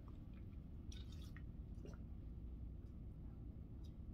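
A woman sips from a bottle.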